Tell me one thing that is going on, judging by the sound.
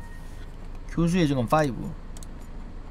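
A young man speaks loudly into a microphone.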